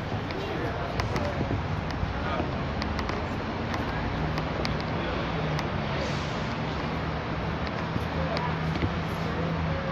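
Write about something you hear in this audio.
Footsteps tap on a brick pavement outdoors.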